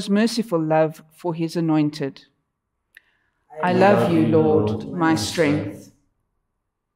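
A middle-aged woman reads aloud calmly into a microphone.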